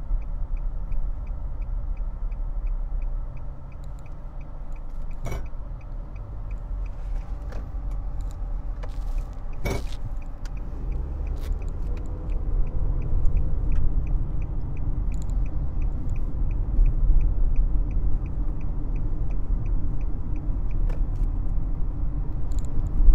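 A car engine hums and tyres rumble steadily on the road, heard from inside the car.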